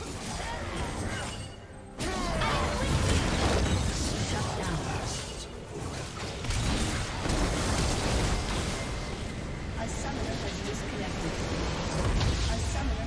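Magic spells zap, crackle and burst in a fast, busy fight.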